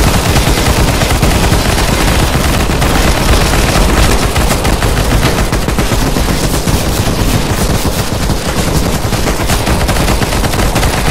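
Automatic rifles fire in rapid bursts.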